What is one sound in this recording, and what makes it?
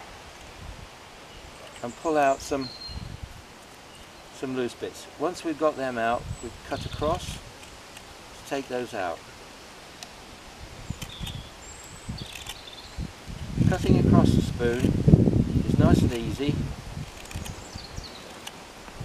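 A knife shaves and scrapes wood close by.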